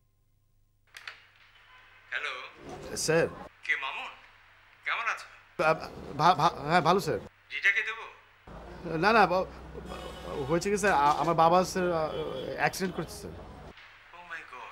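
A man talks on the phone with animation.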